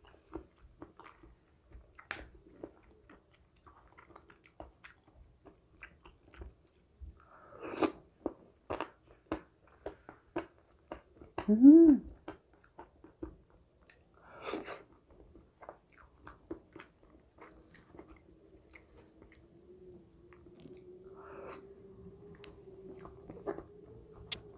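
A young woman eats close to a microphone, with soft wet chewing and smacking.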